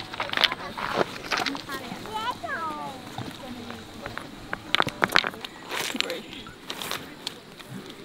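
Pebbles crunch and click underfoot.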